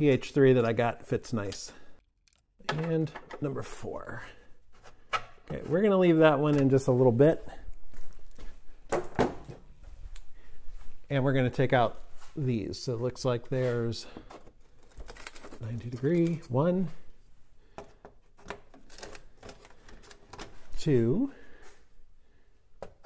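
Plastic fasteners click and snap as a man works them loose.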